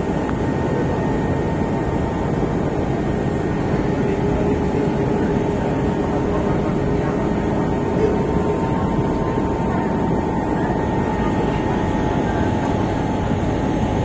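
A ship's engine drones steadily.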